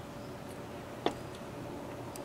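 A glass clinks down on a wooden table.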